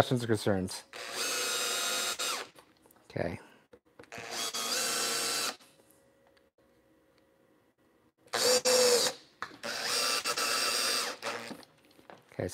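A power drill whirs in short bursts.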